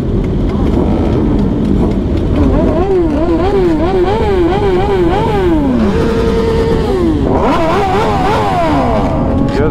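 Motorcycle engines rumble and idle nearby.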